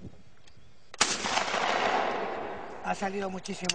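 A shotgun fires a single loud blast outdoors, echoing away.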